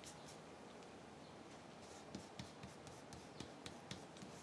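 Fingers fold and crease paper with soft crackles.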